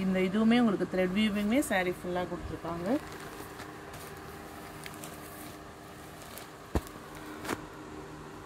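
Silk fabric rustles softly.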